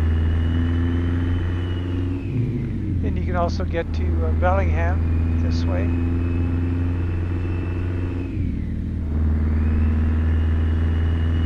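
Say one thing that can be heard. A heavy truck engine drones steadily, easing off briefly twice.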